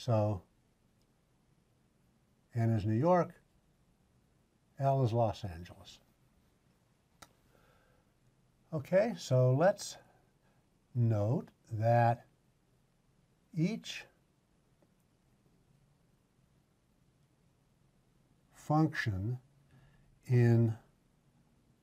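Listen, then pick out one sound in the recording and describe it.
An elderly man speaks calmly and clearly into a close microphone, in short phrases with pauses.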